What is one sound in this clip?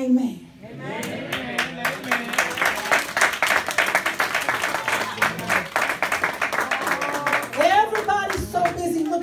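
People in an audience clap their hands rhythmically.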